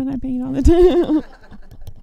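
A brush swirls and taps in a paint palette.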